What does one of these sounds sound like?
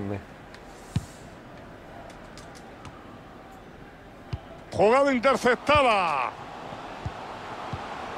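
A football is kicked with dull thuds.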